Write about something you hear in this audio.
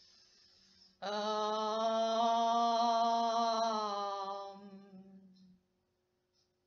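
A young woman chants a long, steady low note close by, then lets it fade.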